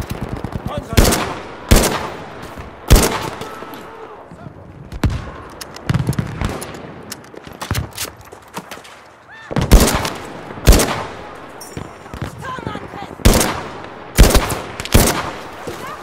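Loud rifle shots fire one at a time, each followed by a short echo.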